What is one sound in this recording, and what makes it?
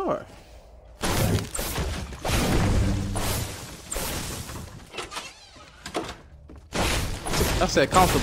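A pickaxe strikes wood with heavy chopping thuds.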